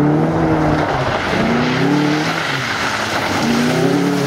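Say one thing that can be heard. Tyres splash through puddles.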